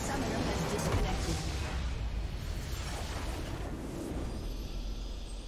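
A large video game explosion booms and rumbles, then fades.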